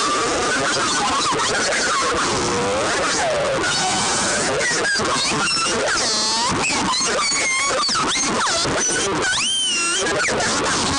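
A distorted electric guitar plays fast, noisy riffs with squealing, bending notes.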